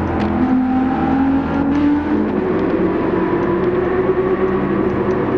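Racing car engines roar at high revs and shift pitch as they speed past.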